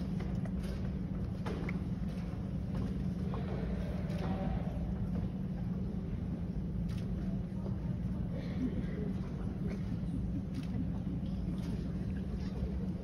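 A woman speaks through loudspeakers in a large echoing hall.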